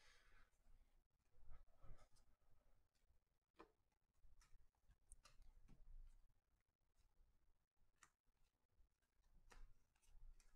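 Stiff cards flick and slap as they are shuffled through by hand.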